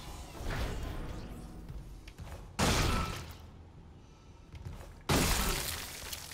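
Heavy boots stomp down onto flesh with loud, wet, crunching thuds.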